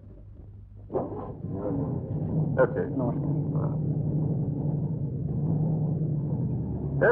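A jeep engine rumbles.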